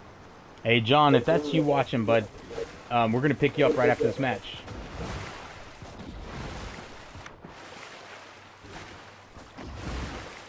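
Water splashes as a game character swims.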